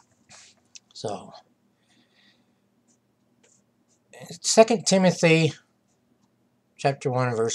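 An elderly man speaks calmly and close, as if into a computer microphone.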